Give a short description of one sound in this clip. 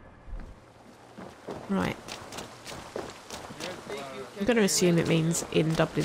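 Footsteps run quickly over hard ground.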